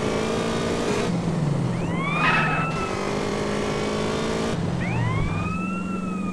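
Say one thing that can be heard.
A motorbike engine roars steadily at speed.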